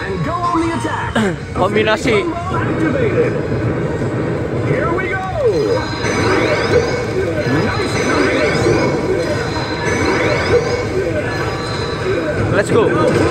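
Arcade game music plays loudly through a speaker.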